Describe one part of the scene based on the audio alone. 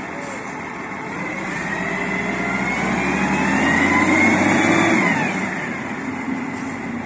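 A forklift engine revs as it lifts a heavy timber beam.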